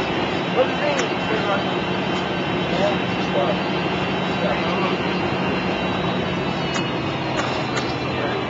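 A bus rattles and clicks as it rolls along.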